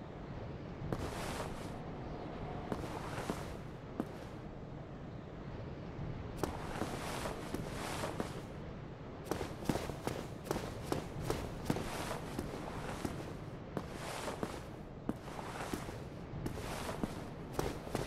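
Armoured footsteps clank and thud on stone.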